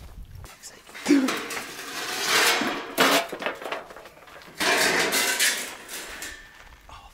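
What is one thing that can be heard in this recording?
A metal sheet scrapes and rattles against concrete.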